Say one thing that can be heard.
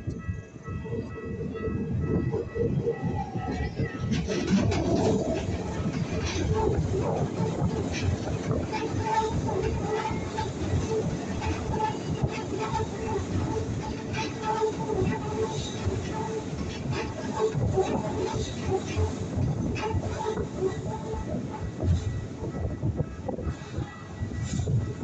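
A train rumbles and clatters across a steel bridge close by.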